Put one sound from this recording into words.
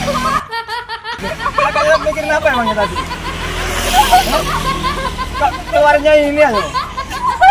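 A young woman speaks excitedly close by.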